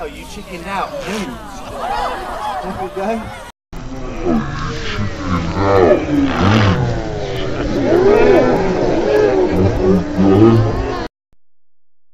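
A crowd of children and adults chatters outdoors.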